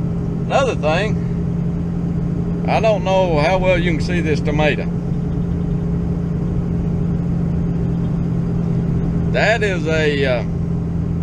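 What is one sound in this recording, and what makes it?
An engine hums steadily.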